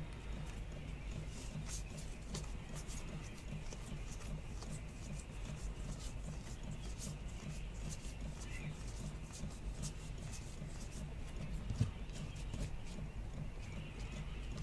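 Trading cards shuffle and flick against each other in a person's hands.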